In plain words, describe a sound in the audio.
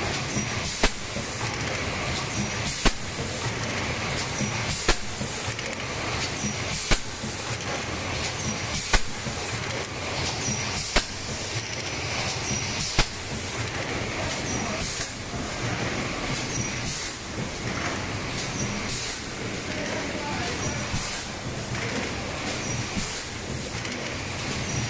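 A machine hums and whirs steadily.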